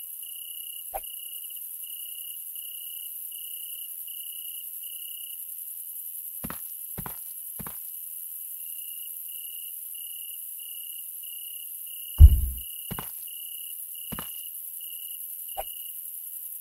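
Plastic crates thud and clatter as they are set down.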